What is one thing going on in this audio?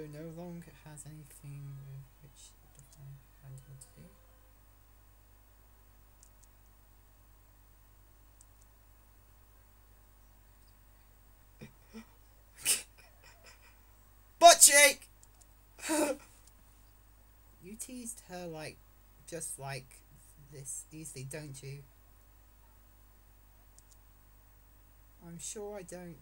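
A teenage boy talks casually and close to a microphone, with pauses.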